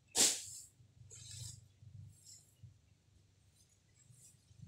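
Footsteps crunch on dry leaves and fade away.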